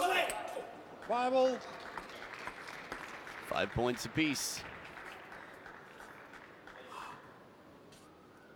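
A crowd cheers and applauds in a large echoing hall.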